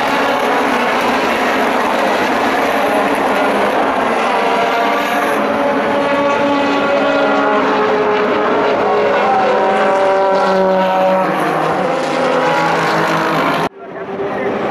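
Racing car engines roar loudly as the cars pass, rising and falling in pitch.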